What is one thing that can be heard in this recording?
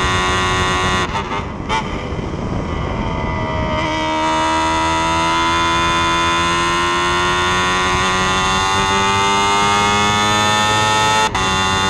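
A racing car engine drops in pitch as the car slows for a corner, then climbs again.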